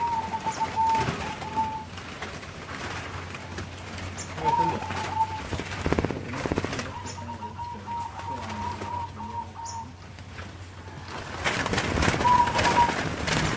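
Zebra doves coo with soft, rolling trills.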